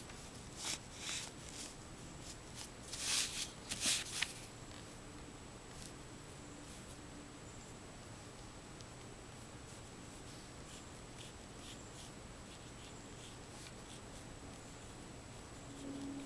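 A brush swishes and taps softly on paper.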